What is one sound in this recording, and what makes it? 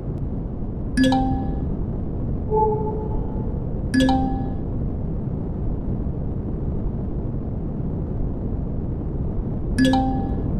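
A bright electronic alert beeps a few times.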